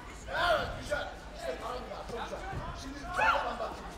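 Padded kicks thud against a body protector.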